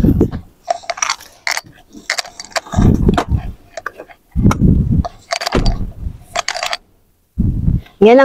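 A seat back clicks and thumps as it is moved.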